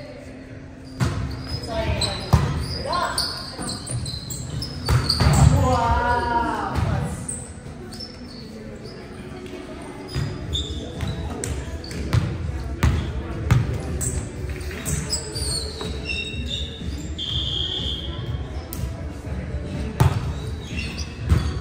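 A volleyball is struck with sharp slaps in a large echoing gym.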